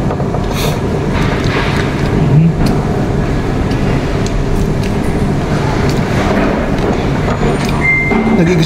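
A plastic knife taps and scrapes on a plate.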